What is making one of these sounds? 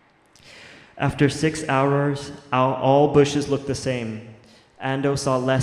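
A young man sings loudly in a drawn-out voice through a microphone.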